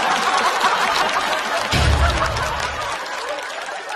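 A young woman laughs heartily.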